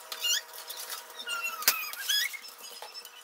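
Items clatter and rattle in a fridge door.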